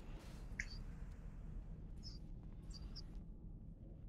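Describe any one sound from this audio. Short bright magic chimes ring out in quick bursts.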